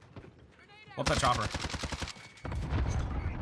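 A rapid burst of gunfire rattles.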